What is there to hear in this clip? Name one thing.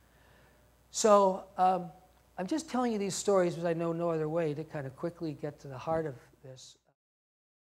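A man speaks to an audience through a microphone in a large hall.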